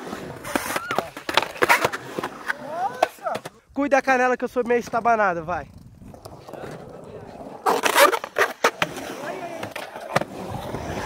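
Skateboard wheels roll and scrape on concrete.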